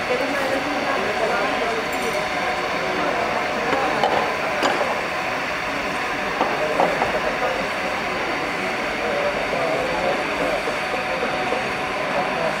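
A track bicycle whirs past on a banked track.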